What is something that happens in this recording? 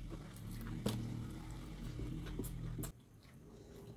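Young women crunch and chew food close to a microphone.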